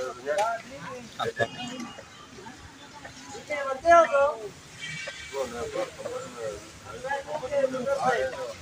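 A young man talks calmly, close up.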